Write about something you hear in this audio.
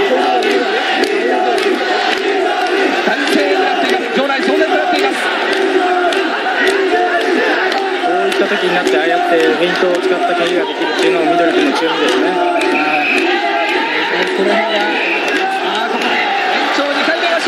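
A large crowd shouts and cheers in an echoing arena.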